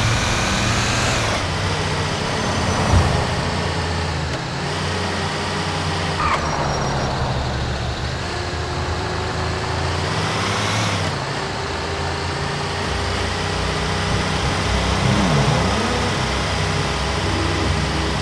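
A heavy truck engine rumbles steadily as it drives.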